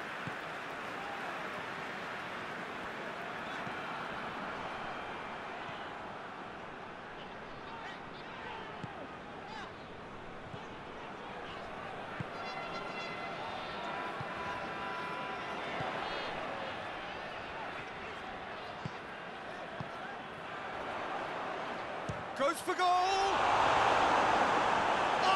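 A football is kicked with dull thuds now and then.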